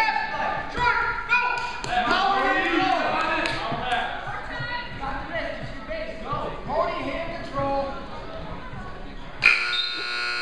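Spectators shout and cheer loudly in an echoing gym.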